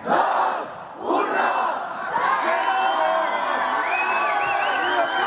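A large crowd cheers and screams excitedly outdoors.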